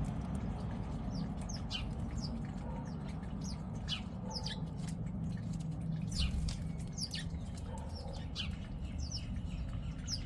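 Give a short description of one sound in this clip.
Small birds chirp and twitter nearby.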